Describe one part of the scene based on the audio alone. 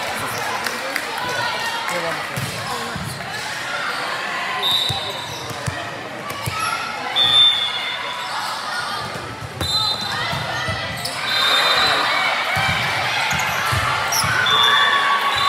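Young women call out and chatter across an echoing gym.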